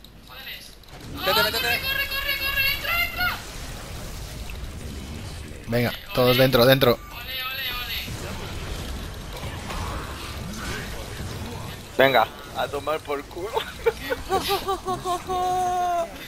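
Fantasy battle sound effects clash and blast in a video game.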